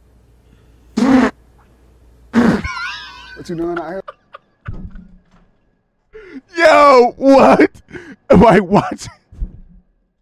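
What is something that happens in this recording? A young man talks and laughs loudly into a close microphone.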